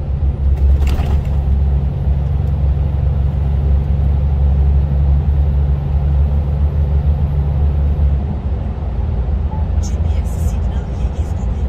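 Truck tyres roar on the road surface inside a tunnel.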